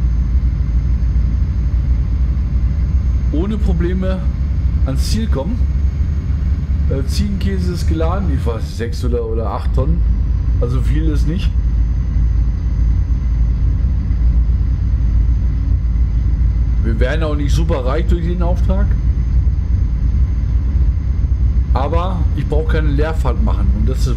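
A truck engine drones steadily while driving on a road.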